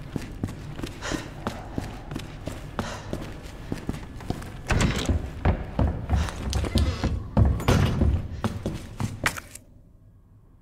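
Heavy boots thud steadily on a hard floor.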